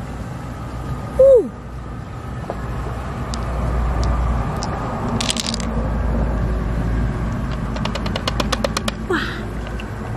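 Pearls click softly against a shell.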